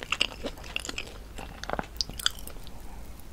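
A woman chews a crunchy fried snack close to a microphone.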